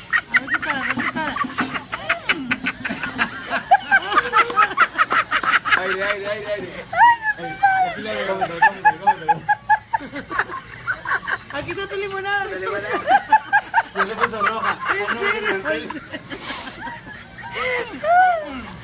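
Several people laugh and chatter loudly nearby.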